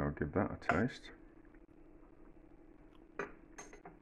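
A metal spoon clinks against a pot.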